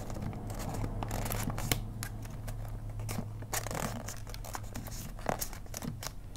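Paper crinkles and rustles as it is folded by hand.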